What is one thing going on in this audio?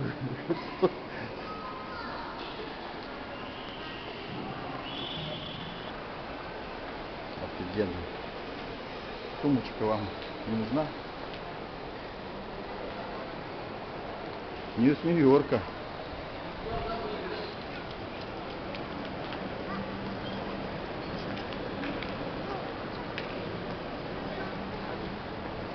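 A steady murmur of a large indoor hall echoes throughout.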